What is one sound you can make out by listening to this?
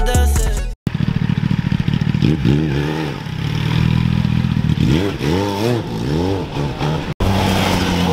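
A motorcycle engine idles and revs loudly close by.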